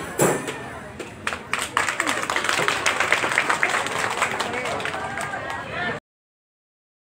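Frame drums beat in a quick rhythm.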